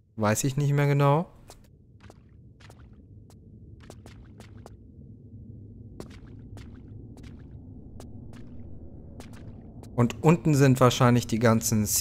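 A man speaks close into a microphone with animation.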